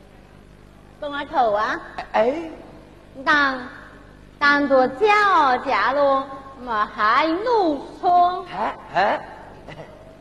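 A woman sings in a high, wavering opera voice.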